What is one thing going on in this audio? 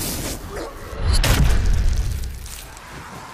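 A blade hacks wetly into flesh with a splatter.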